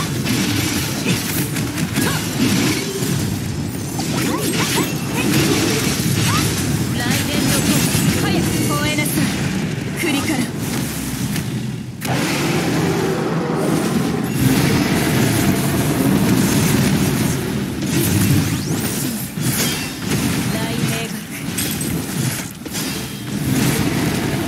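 Rapid game combat effects clash, slash and explode.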